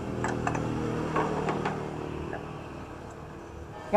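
A wooden tray knocks on a wooden table.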